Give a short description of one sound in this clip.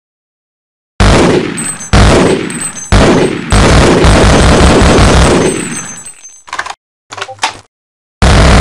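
A submachine gun fires short, loud bursts in an echoing corridor.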